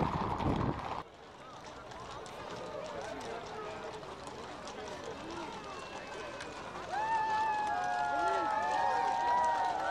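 Horses' hooves clop on the pavement.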